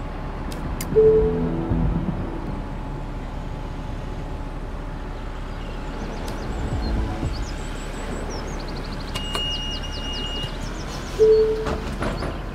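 An electronic beep sounds from a ticket machine.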